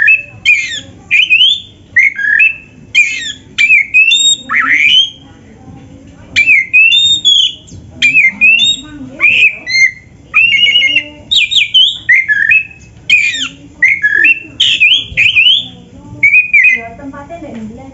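A songbird sings loud, varied whistling phrases close by.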